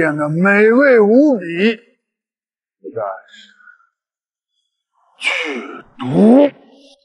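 A middle-aged man speaks with animation, close to a microphone.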